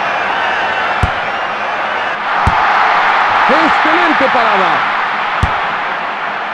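A football is kicked with short thuds.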